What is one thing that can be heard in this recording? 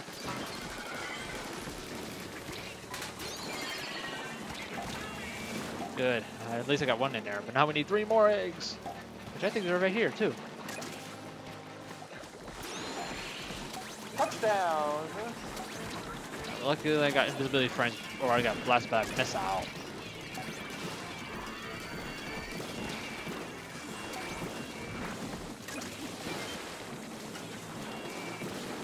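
Video game shots and splashes pop and burst throughout.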